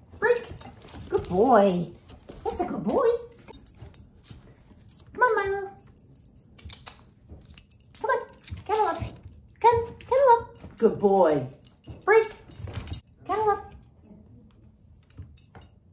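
A small dog's claws patter on a wooden floor.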